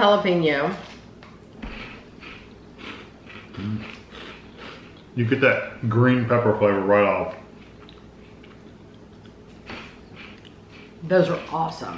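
A man crunches crisp snacks while chewing.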